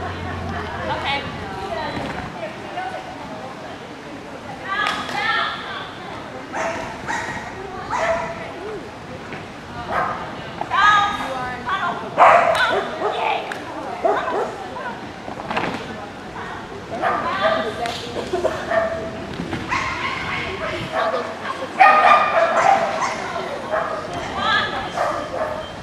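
A woman calls out short commands loudly at a distance.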